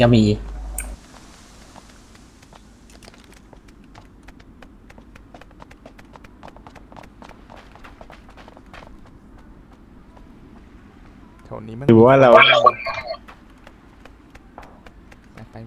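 Quick footsteps patter across hard ground.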